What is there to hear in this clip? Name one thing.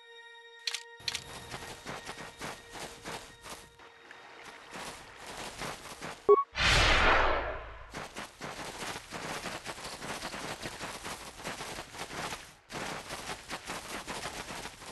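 Footsteps run quickly over grassy ground.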